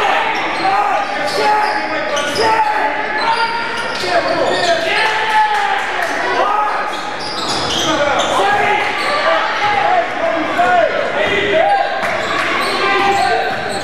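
A crowd murmurs in an echoing gym.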